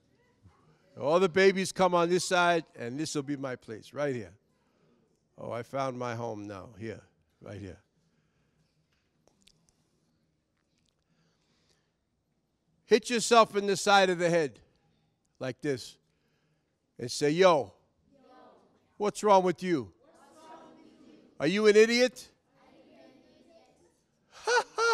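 A man speaks with animation into a microphone, heard through a loudspeaker in an echoing room, with long pauses.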